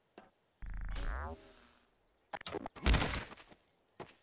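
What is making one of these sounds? A body hits the ground with a heavy thud.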